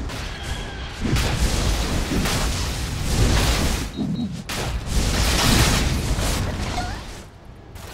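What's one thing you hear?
Game spell effects crackle and boom during a fight.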